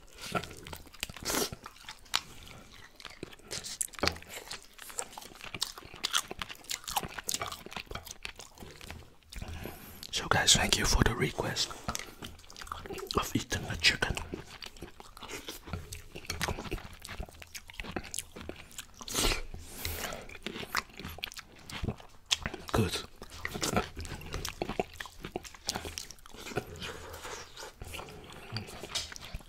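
A man chews and smacks his lips close to a microphone.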